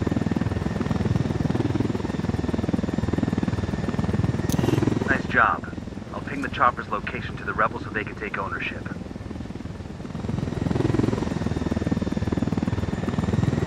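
A helicopter's engine and rotor blades whir and thump steadily.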